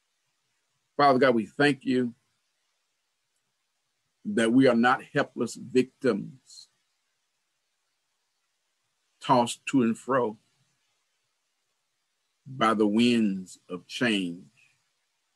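A man speaks slowly and calmly in short phrases over an online call.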